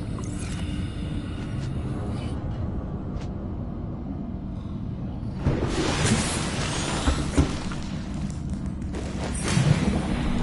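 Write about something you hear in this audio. Water rumbles and gurgles deeply all around.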